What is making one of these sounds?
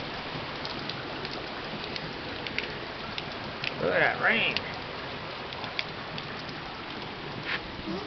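Raindrops patter and tap nearby.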